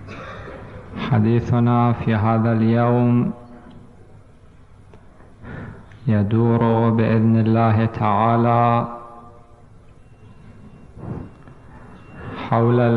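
A man chants in long, sustained phrases through a microphone, echoing in a large hall.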